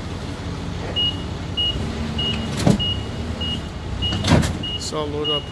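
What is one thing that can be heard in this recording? A forklift beeps in quick repeated pulses.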